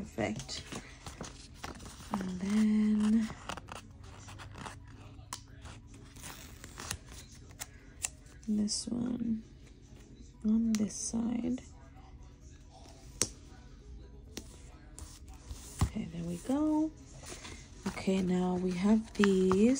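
A sheet of paper rustles and crinkles as hands handle it.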